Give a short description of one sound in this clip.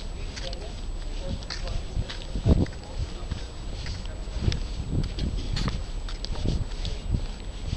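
Cloth rustles and rubs right against the microphone.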